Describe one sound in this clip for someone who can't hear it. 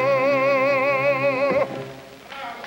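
An elderly man sings close by with a wavering voice.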